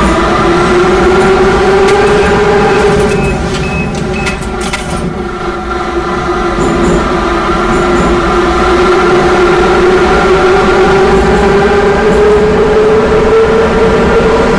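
Train wheels rumble and clatter over rails through a tunnel.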